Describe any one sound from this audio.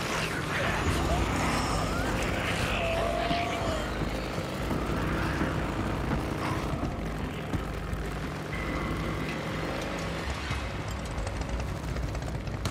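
Tyres crunch over gravel and dirt.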